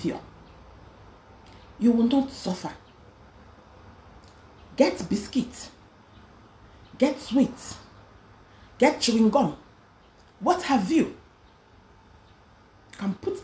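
A young woman speaks close to the microphone in short, deliberate phrases with pauses between them.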